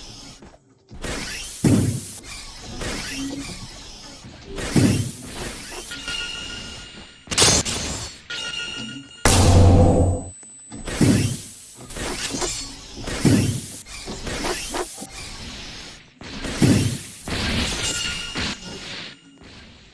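Sword slashes whoosh and hit with sharp impacts, again and again.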